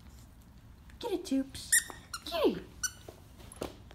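A rubber toy squeaks as a dog chews it.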